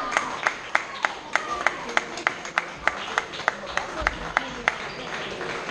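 A ping pong ball clicks quickly back and forth on paddles and a table in a large echoing hall.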